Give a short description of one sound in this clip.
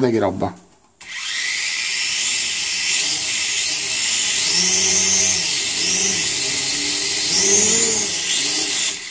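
A small toy drone's propellers whir with a high buzzing whine that rises and falls.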